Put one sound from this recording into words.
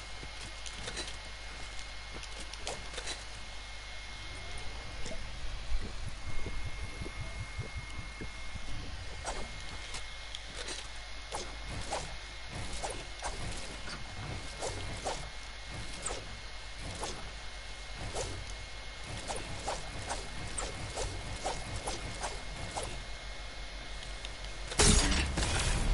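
Wooden walls knock and clatter as they are built in quick succession.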